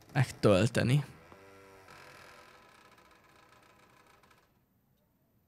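A door creaks open slowly.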